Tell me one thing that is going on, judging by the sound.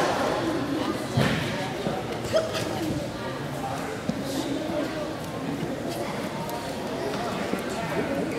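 Onlookers murmur in a large echoing hall.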